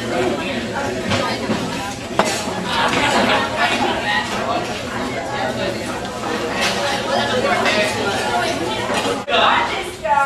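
A large crowd of children and adults chatters loudly in an echoing hall.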